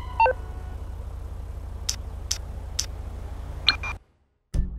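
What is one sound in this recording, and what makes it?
Soft phone button clicks tick several times.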